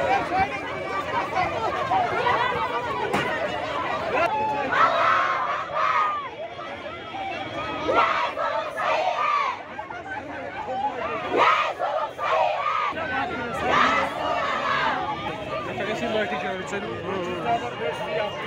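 A crowd of women shouts and wails loudly close by, outdoors.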